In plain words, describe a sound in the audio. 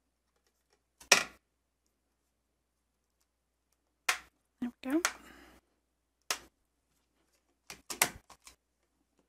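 Plastic pieces click and tap against a hard surface.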